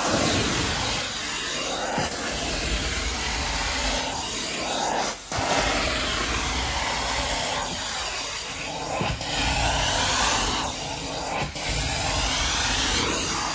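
A cleaning wand scrapes across carpet.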